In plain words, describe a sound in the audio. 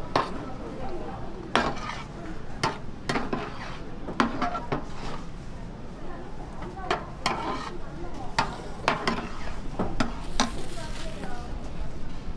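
A ladle scrapes and clinks against a metal pan.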